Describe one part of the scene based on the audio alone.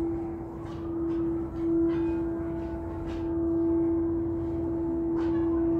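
A singing bowl rings with a steady, humming tone.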